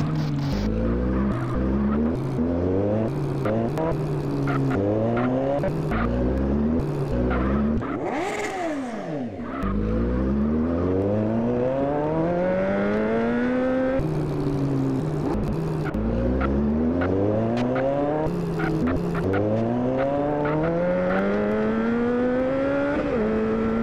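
A motorcycle engine revs hard, rising in pitch again and again as it shifts through the gears.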